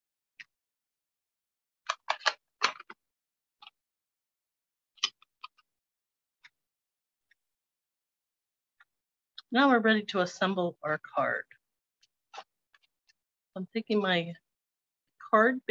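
Paper and card rustle and slide as they are handled.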